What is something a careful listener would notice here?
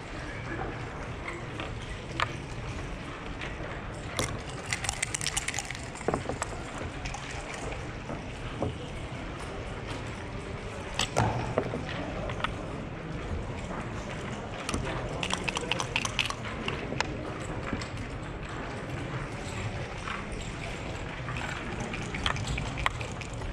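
Backgammon checkers click and slide on a board.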